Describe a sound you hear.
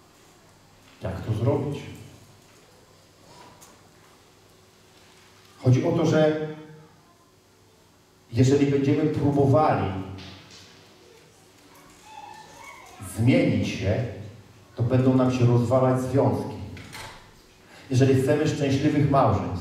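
A man speaks with animation into a microphone in a large echoing hall, with pauses between phrases.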